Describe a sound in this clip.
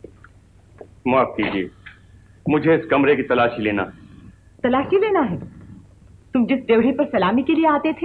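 An older man speaks firmly, close by.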